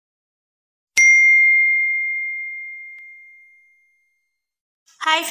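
A bell chimes once and rings out.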